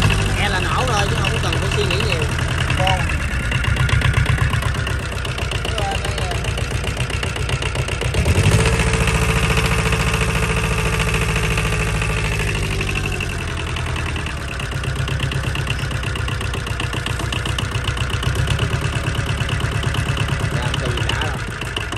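A diesel engine runs close by with a steady knocking rumble.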